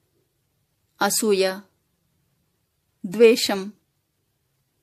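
A woman speaks calmly in short phrases, close to a microphone.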